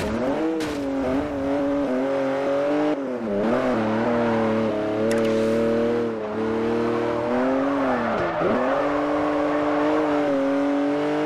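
Tyres screech as a car skids and drifts.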